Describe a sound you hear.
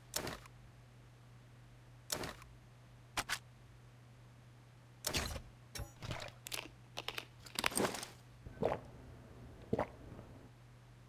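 Menu clicks and item sounds tick sharply now and then.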